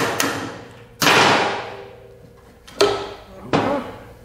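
Metal parts clank loudly a few times.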